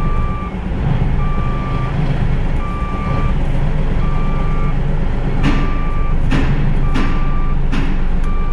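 A truck engine rumbles steadily inside the cab.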